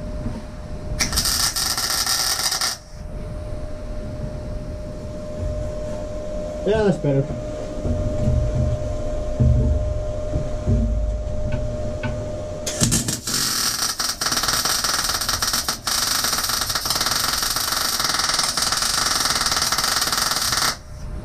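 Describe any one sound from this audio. A welder buzzes and crackles steadily while welding metal.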